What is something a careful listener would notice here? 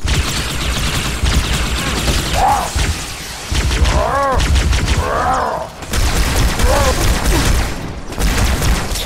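Energy weapons fire in rapid crackling bursts.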